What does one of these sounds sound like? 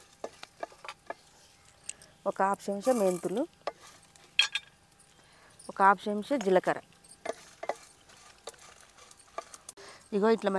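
A wooden spatula scrapes and taps against a metal pan.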